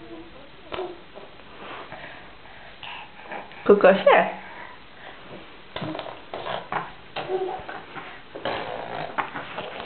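A wooden crib rattles as a toddler shakes its rails.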